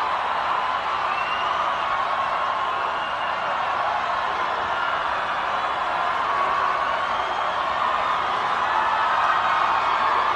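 A large crowd cheers and sings along in a big arena.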